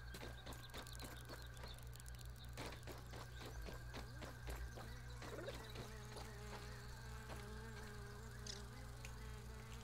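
Footsteps crunch softly on dry soil.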